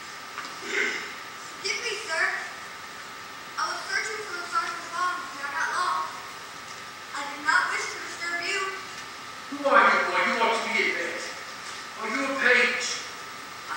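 A young man answers in a raised voice from a distance.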